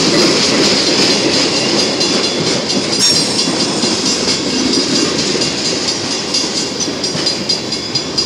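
A long freight train rumbles past close by, its wheels clattering on the rails.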